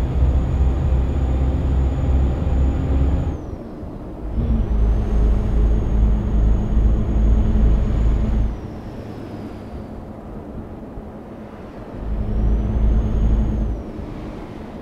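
A truck engine rumbles steadily, rising and falling in pitch as the truck accelerates and eases off.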